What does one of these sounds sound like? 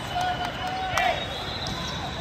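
A volleyball is struck hard with a loud slap.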